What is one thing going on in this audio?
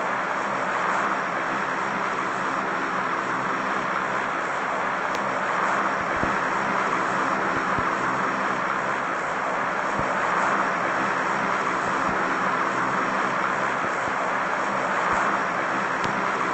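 A large propeller plane's engines drone steadily.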